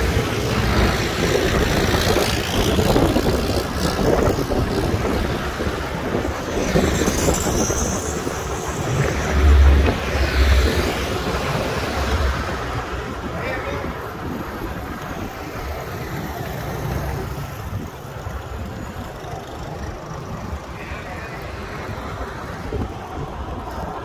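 Cars pass by on a road.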